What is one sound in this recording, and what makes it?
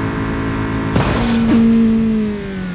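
A car crashes with a loud bang.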